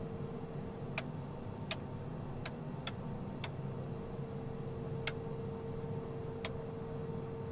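Switches click sharply several times.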